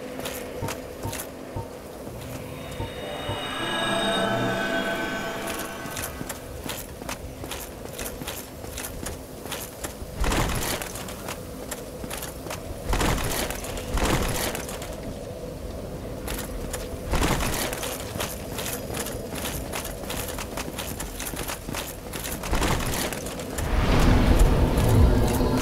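Armoured footsteps clatter on stone.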